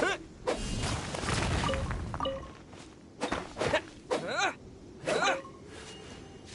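A weapon strikes rock with sharp, ringing blows.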